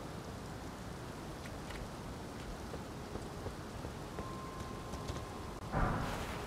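Footsteps scuff on stone.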